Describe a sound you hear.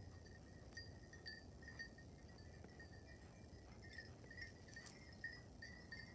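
A dog's paws patter lightly on snow.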